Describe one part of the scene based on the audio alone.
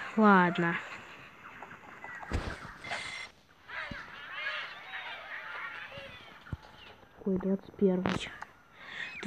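Cartoon birds squawk in short, bouncy cries.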